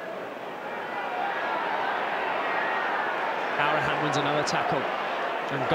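A large stadium crowd roars and chants outdoors.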